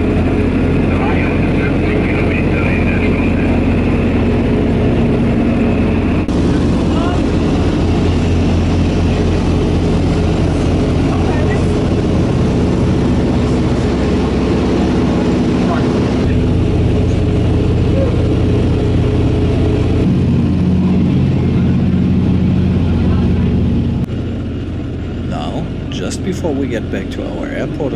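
Propeller engines drone loudly and steadily.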